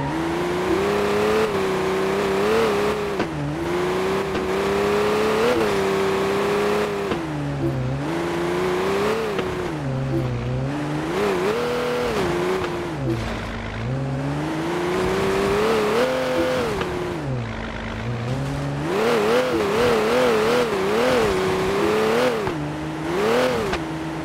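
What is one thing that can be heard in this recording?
A sports car engine revs up and down, rising and falling in pitch as gears shift.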